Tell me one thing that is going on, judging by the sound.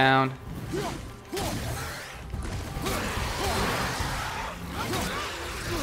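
Heavy blows thud and crunch as an axe strikes enemies.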